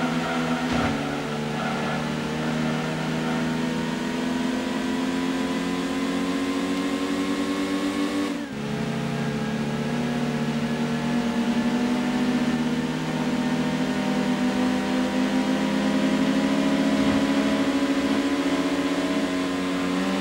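A racing car engine revs steadily higher, with a brief drop as it shifts gear.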